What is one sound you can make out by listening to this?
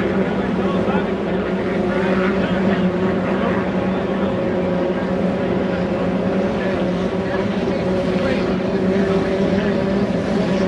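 A racing boat engine roars loudly and steadily as the boat speeds across the water.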